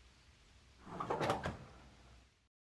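An oven door shuts with a thud.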